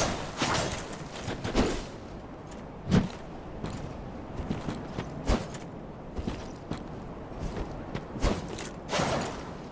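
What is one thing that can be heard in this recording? Armour clanks with heavy footsteps.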